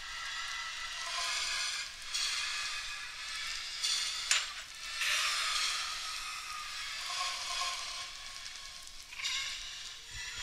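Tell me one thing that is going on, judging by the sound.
Lava bubbles and pops nearby.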